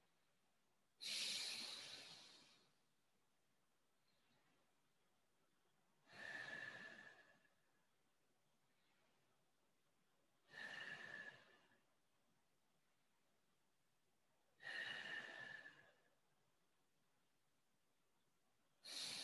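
A man breathes out deeply and slowly, again and again, close by.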